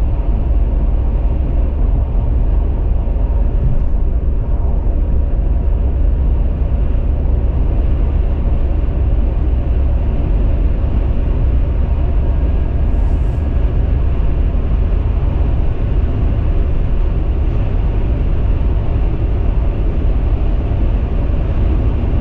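A car drives steadily along a highway with a low, rumbling road noise from the tyres.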